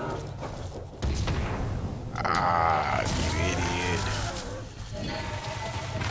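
Magic blasts burst with a loud crackle.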